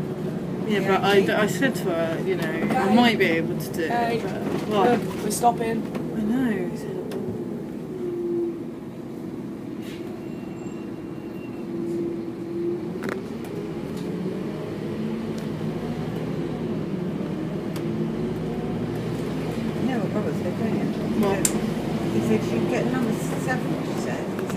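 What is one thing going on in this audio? A bus engine hums steadily while driving along a road.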